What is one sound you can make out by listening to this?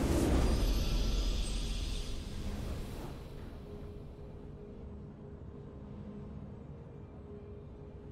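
A triumphant victory fanfare plays softly.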